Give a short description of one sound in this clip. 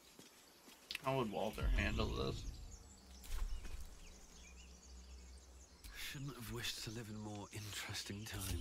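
A young man speaks casually into a close microphone.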